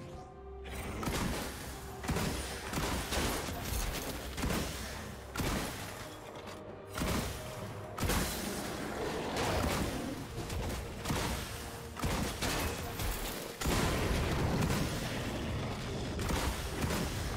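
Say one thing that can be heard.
Game combat hits thud and clash repeatedly.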